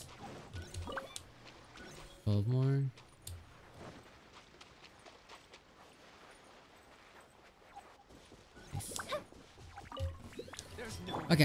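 Footsteps patter quickly on sand and grass.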